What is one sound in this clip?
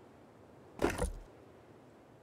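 A short, sharp click sounds once.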